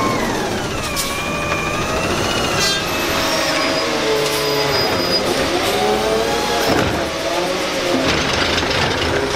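A garbage truck engine idles loudly close by.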